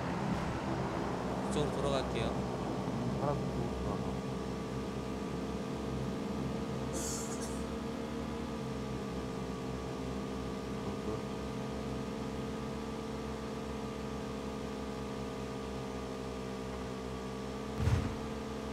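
A motorcycle engine drones as it rides uphill.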